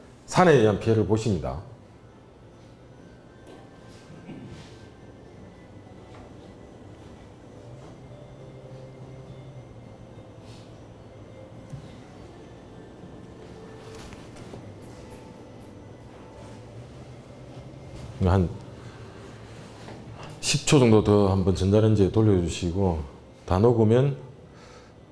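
A man speaks through a microphone in a large room, in bursts with long pauses.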